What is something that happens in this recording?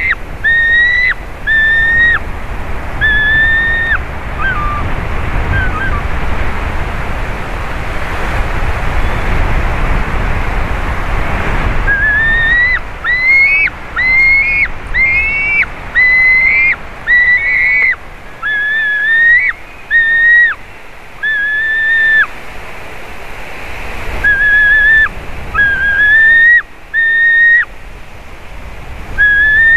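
An eagle gives repeated high, piping whistled calls close by.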